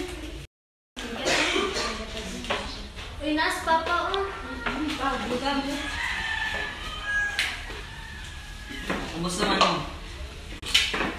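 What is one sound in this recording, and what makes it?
Young people chatter and laugh nearby.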